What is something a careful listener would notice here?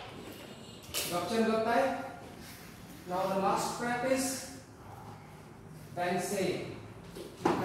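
A man gives instructions in a calm, drawn-out voice in a large room.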